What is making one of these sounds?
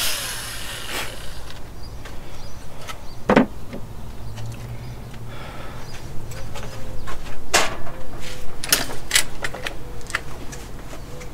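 Metal parts click and knock now and then.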